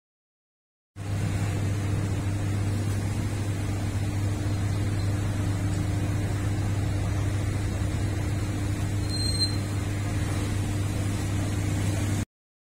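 A rotisserie motor hums steadily.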